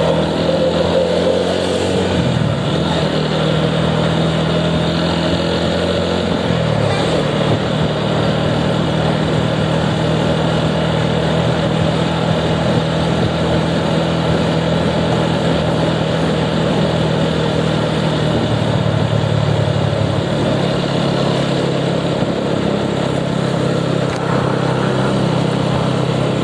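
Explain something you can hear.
Wind rushes past while riding along a road.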